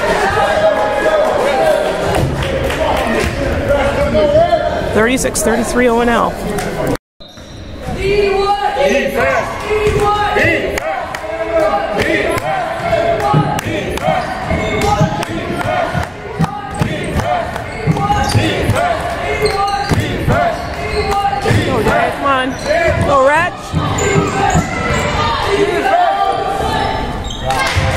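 A crowd of young people shouts and chatters in a large echoing hall.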